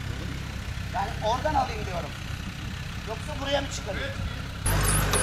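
A man calls out directions from nearby, outdoors.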